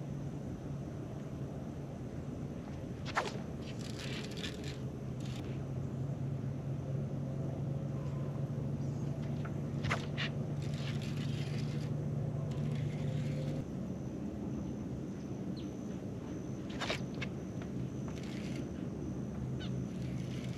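A small electric motor hums steadily.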